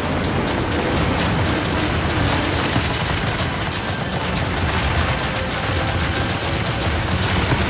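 Explosions boom and crackle on impact.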